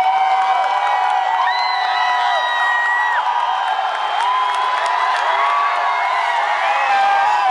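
A band plays loud live music with an electric guitar.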